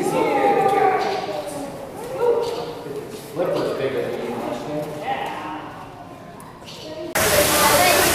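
A young child babbles excitedly close by.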